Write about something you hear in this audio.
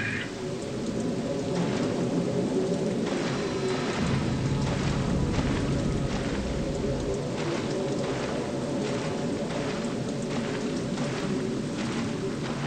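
Footsteps splash through shallow water at a steady pace.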